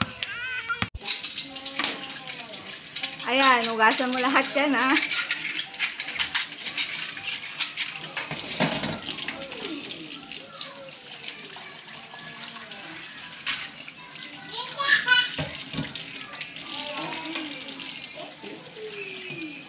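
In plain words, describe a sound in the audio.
Tap water runs into a sink.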